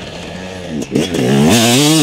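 Dirt sprays from a dirt bike's rear tyre.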